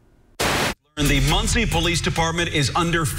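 A man speaks steadily, heard through a broadcast.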